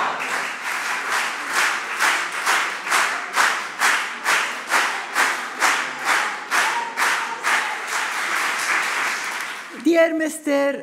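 A crowd applauds and claps in rhythm in a large hall.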